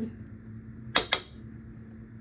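A plate clinks as it is set down on a hard surface.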